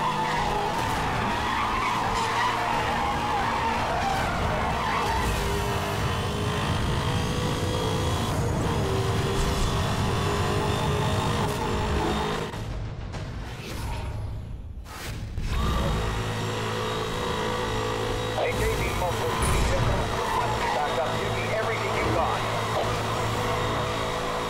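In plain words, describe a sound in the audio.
Tyres screech as a car drifts through a bend.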